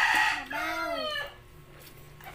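A young boy speaks loudly and excitedly, close by.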